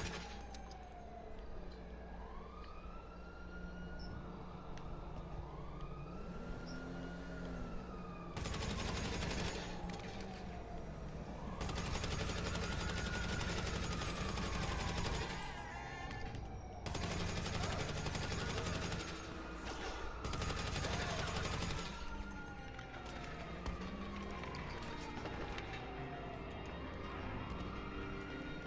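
Police sirens wail and rise and fall nearby.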